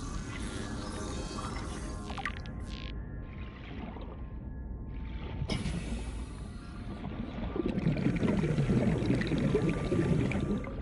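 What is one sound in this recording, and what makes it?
A low underwater rumble murmurs steadily throughout.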